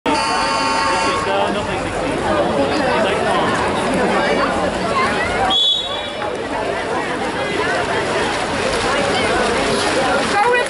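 A crowd of people chatters and shouts outdoors.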